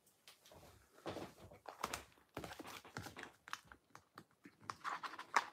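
Paper sheets rustle and slide as they are handled.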